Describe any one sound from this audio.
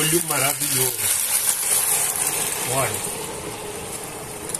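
A thick sauce slides into a hot pan and sizzles loudly.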